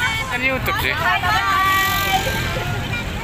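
A young woman shouts cheerfully close by.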